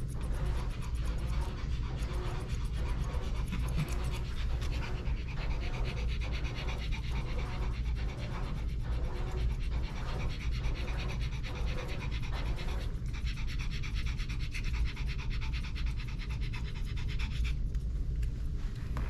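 Scissors snip rapidly and steadily close by.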